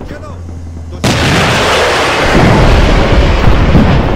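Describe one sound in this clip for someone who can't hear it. A heavy gun fires in a loud, steady roaring blast.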